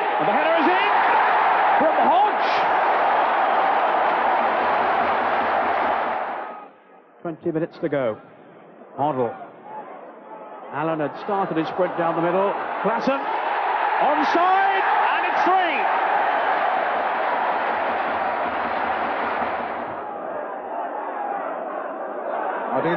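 A large crowd roars and cheers loudly.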